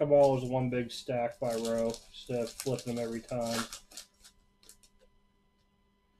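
A foil card wrapper crinkles as it is torn open.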